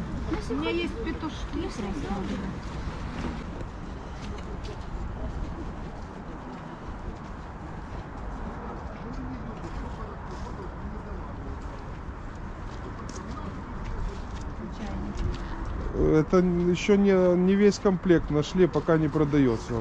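Men and women chat in the background outdoors.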